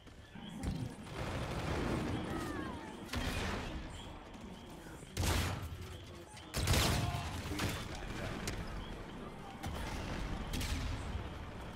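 Gunshots ring out in bursts.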